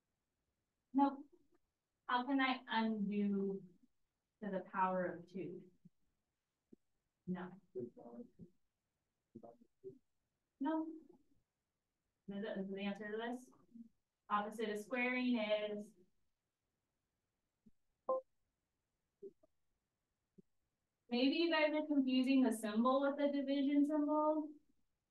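A woman speaks calmly into a microphone, explaining in short phrases.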